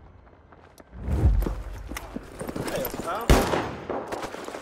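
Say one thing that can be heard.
A rifle fires loud, sharp shots that echo outdoors.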